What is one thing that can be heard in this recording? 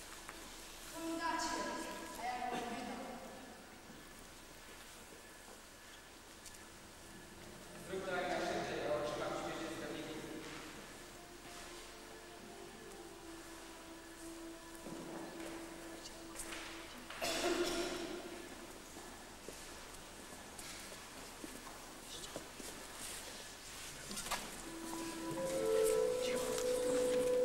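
Children sing together in a large echoing hall.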